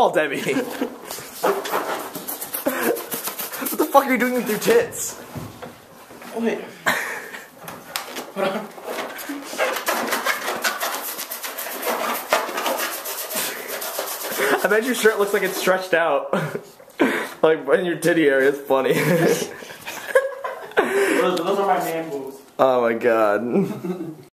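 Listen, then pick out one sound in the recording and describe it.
Young men talk and laugh loudly close by.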